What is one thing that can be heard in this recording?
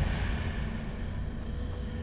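Footsteps run across a stone floor.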